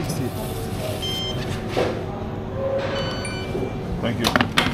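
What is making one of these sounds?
A card terminal beeps several times.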